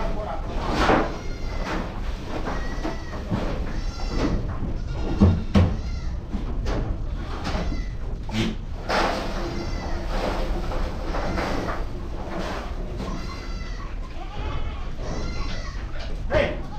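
Many goats bleat loudly and repeatedly, echoing under a metal roof.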